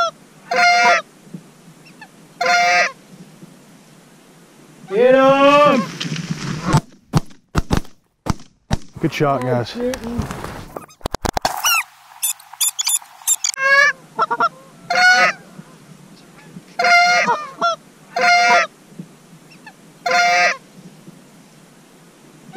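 Geese honk loudly and repeatedly overhead.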